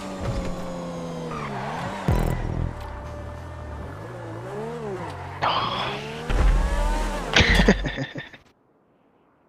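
A sports car engine revs and roars, rising and falling in pitch.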